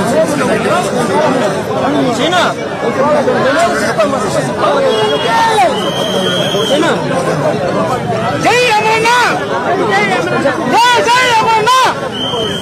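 A crowd of men chatter and call out loudly all around.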